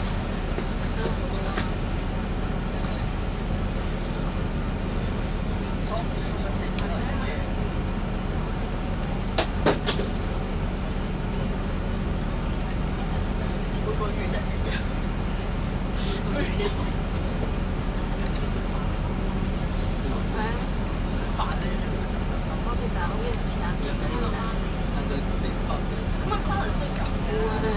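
City traffic hums all around.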